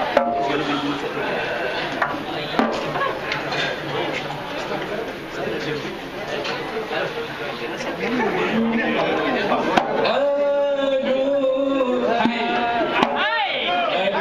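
Men sing together in a chorus.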